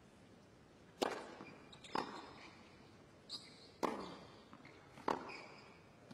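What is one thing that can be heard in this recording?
A tennis racket strikes a ball with sharp pops, back and forth.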